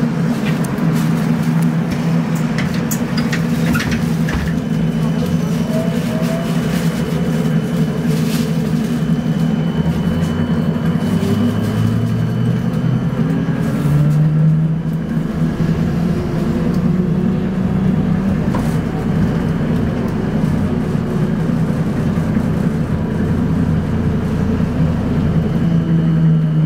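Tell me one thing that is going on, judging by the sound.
Traffic passes by on a busy road.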